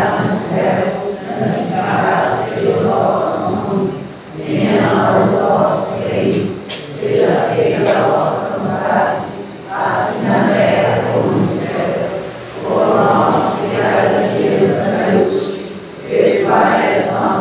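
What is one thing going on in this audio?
A congregation sings together in an echoing hall.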